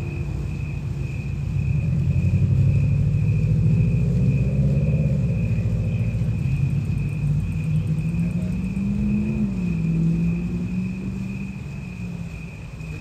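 A young man sings loudly into a microphone through a loudspeaker.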